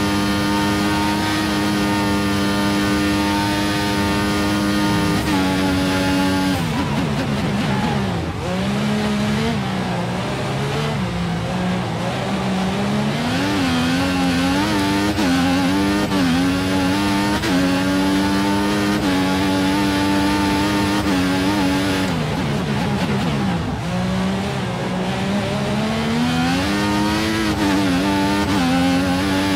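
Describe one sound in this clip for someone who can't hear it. A racing car engine screams at high revs, dropping sharply as it slows and climbing again through quick gear changes.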